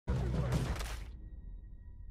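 A heavy body thuds and tumbles onto leafy ground.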